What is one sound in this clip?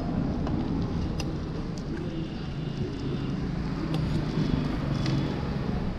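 A metal ladle scrapes and scoops porridge from a pot.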